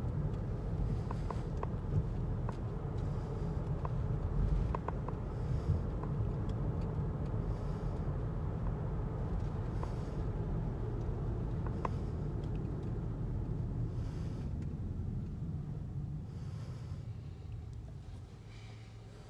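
A car drives along with a steady low road rumble from inside.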